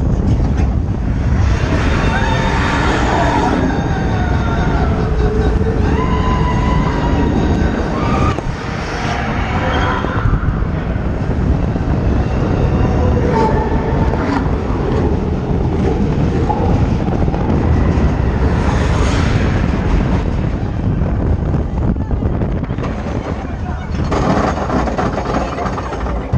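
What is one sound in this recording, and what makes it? Wind roars past at speed.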